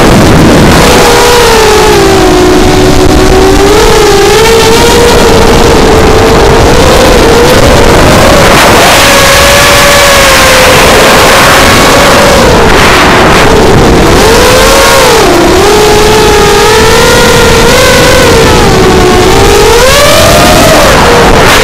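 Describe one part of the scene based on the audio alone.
A small drone's motors whine steadily, rising and falling in pitch as it speeds and turns.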